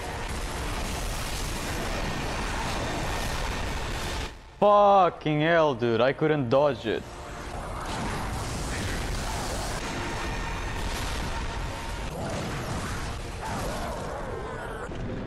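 Magical blasts whoosh and rumble during a fight.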